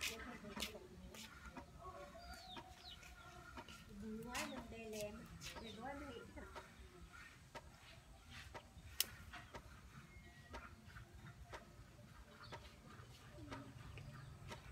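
Fresh green onion stalks snap and rustle as they are trimmed by hand.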